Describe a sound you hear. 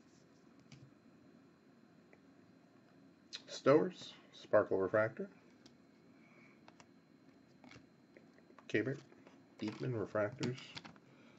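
Trading cards slide and flick against each other in hand.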